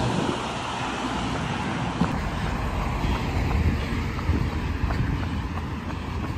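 A bus drives past.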